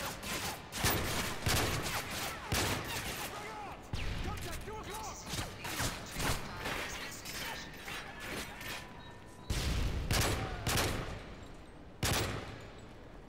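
Gunshots fire in rapid bursts, echoing.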